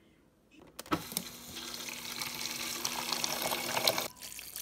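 Water splashes into a plastic jug.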